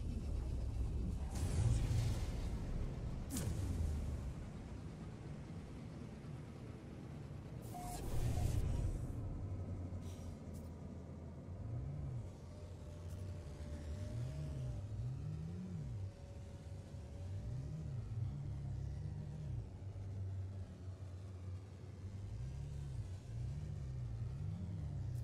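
A spaceship's engine hums with a low, steady rumble.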